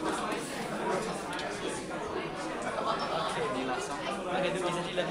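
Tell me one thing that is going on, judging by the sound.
A saxophone plays.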